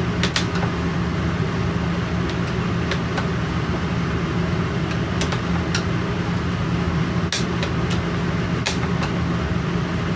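A screwdriver clicks and scrapes against metal.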